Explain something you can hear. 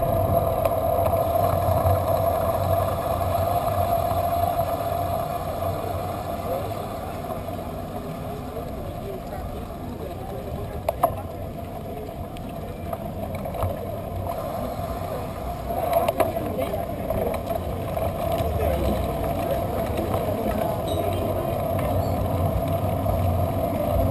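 Traffic hums steadily along a nearby road.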